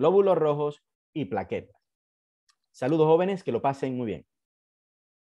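A man speaks calmly into a close microphone, as in an online talk.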